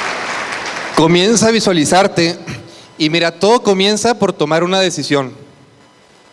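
A man speaks with animation into a microphone, heard through loudspeakers in a large hall.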